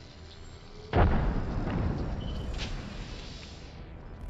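A shield battery charges up with a rising electronic hum.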